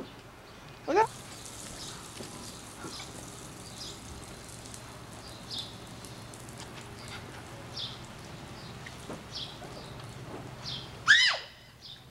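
A lawn sprinkler hisses as it sprays water.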